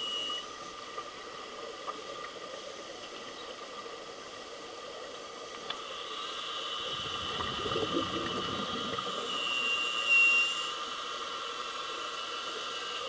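Air bubbles from scuba divers gurgle and rush underwater.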